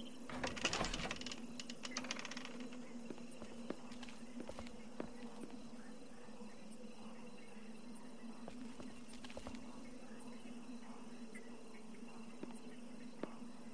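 Clothing rustles softly as a person crawls across a hard floor.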